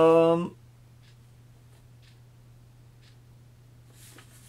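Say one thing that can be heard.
Paper rustles softly in a man's hands.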